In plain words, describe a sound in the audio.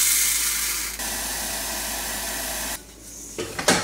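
Water runs from a tap into a pot.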